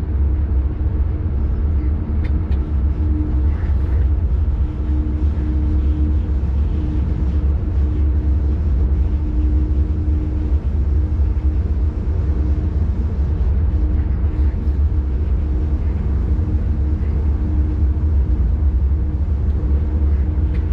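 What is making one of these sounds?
Wind buffets the front of the moving train.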